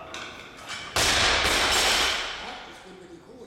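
A loaded barbell crashes down onto the floor.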